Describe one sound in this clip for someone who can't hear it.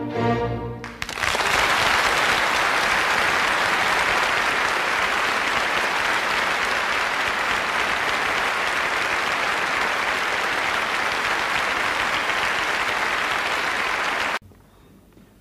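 An audience applauds loudly and steadily in a large hall.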